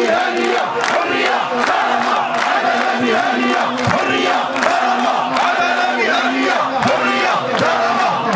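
A man shouts slogans through a megaphone.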